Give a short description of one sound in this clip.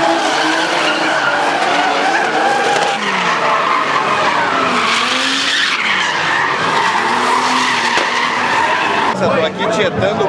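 Car engines roar and rev.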